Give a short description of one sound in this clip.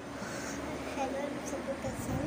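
A young girl talks softly close by.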